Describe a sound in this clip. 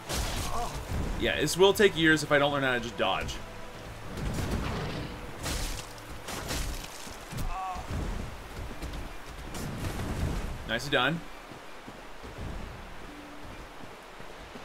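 A sword swings through the air with heavy whooshes.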